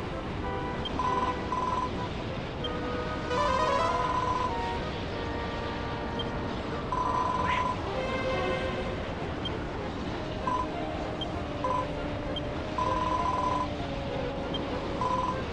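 Short electronic blips sound in quick bursts.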